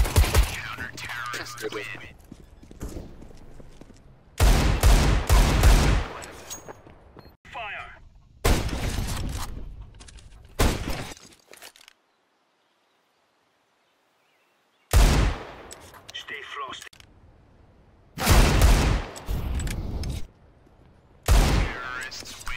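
Loud gunshots crack in short bursts.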